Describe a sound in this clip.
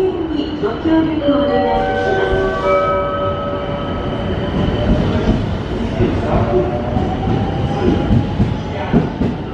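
An electric train's motors whine and rise in pitch as the train pulls away.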